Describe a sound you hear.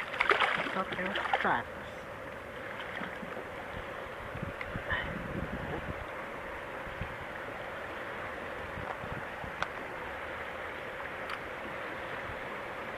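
River water rushes steadily nearby.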